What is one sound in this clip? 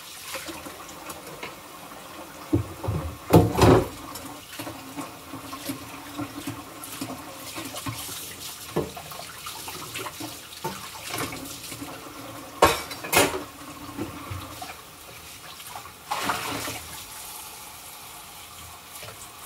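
Dishes clink and clatter in a sink.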